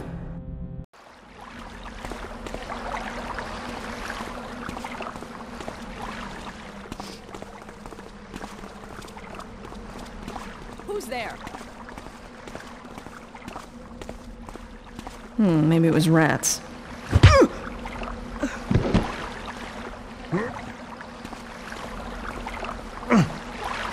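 Footsteps fall on cobblestones.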